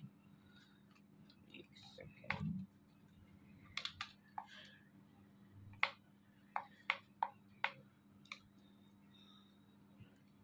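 Plastic parts click and clack as they are handled close by.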